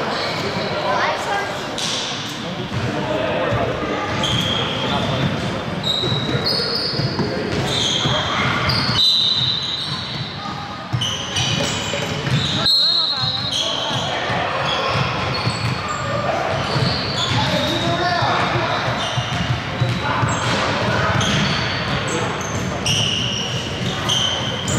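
Young players shout and call out in a large echoing gym.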